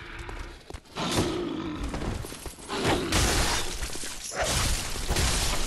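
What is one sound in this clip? A blade slashes and strikes with loud, heavy hits.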